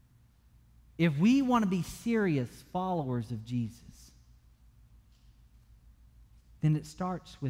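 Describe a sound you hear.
A man speaks with animation through a microphone in a slightly echoing room.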